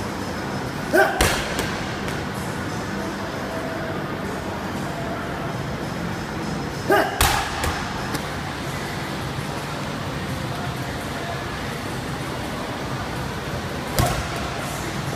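A heavy ball thuds hard against a wall and the floor.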